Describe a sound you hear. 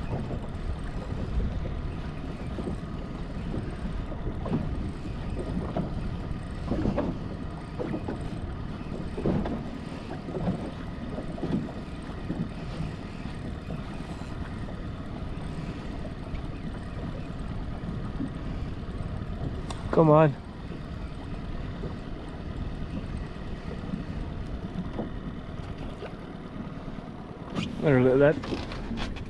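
Wind blows over open water.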